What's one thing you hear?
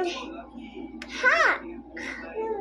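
A young girl squeals in a high voice.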